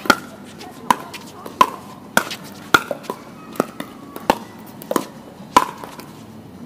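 Paddles hit a plastic ball back and forth with sharp pops.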